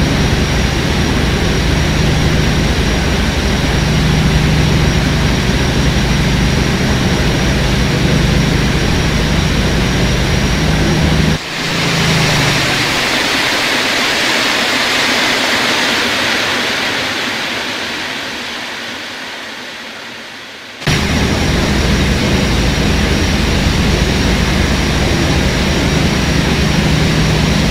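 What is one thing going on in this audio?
A locomotive engine hums steadily from inside the cab.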